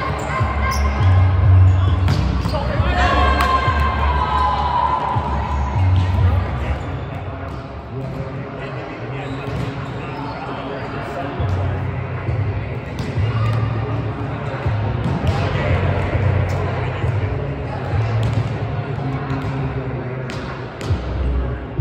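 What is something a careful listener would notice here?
A volleyball is struck with hands, thudding sharply.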